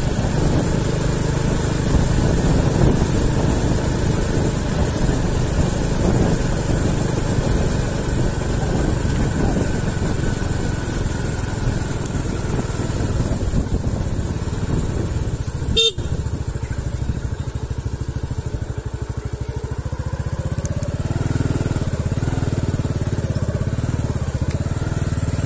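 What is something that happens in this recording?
A vehicle engine hums steadily at low speed.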